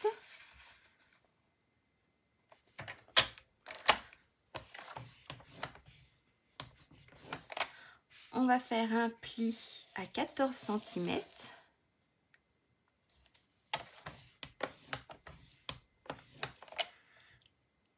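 Paper rustles and slides across a trimmer board.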